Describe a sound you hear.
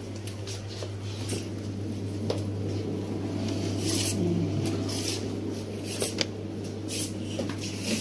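A refrigerator door opens and shuts with a click.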